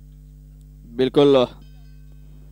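A man cheers loudly nearby.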